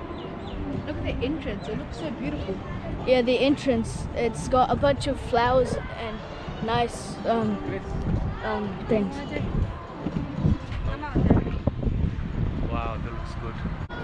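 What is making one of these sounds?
Several women and children chatter nearby outdoors.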